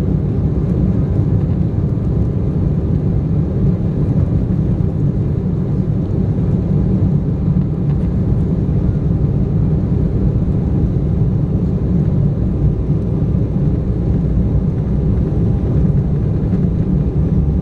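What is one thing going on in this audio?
Wheels rumble over a runway.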